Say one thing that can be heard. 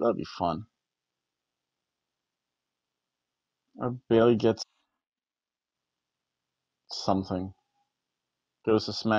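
A middle-aged man reads out in short phrases, close to a microphone, with silent pauses between them.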